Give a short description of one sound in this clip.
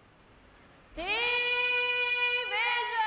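A bugle corps holds a long, sustained brass chord.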